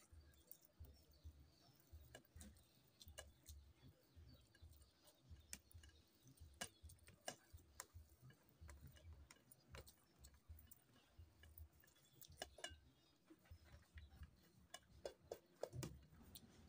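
A hand squishes and mixes soft rice on a metal plate, close up.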